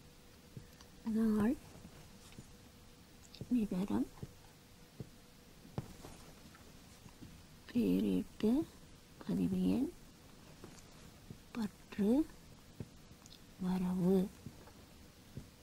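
A woman speaks in short, calm phrases close by.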